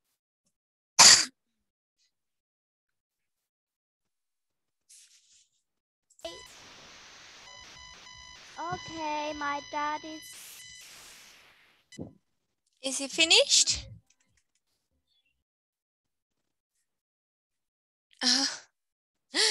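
Young women talk with each other over an online call, in short bursts.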